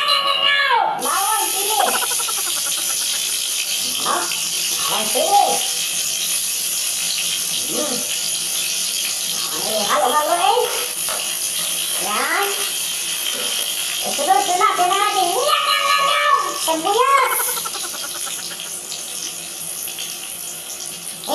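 Garlic sizzles in hot oil in a wok.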